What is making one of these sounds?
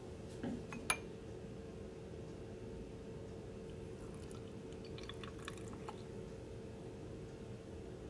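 Liquid pours into two glass beakers.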